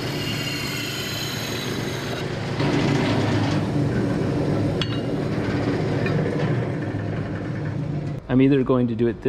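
A band saw motor hums steadily nearby.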